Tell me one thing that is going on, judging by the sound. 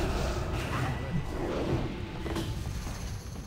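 Fire roars.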